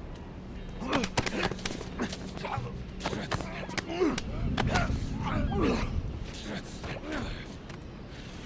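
Bodies scuffle and thump in a close struggle.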